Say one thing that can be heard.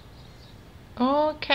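A young woman exclaims briefly close to a microphone.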